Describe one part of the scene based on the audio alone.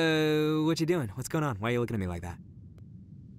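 A young man speaks drowsily.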